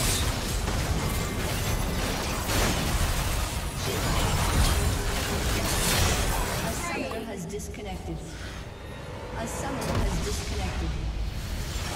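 Game combat sounds clash and burst with spell effects.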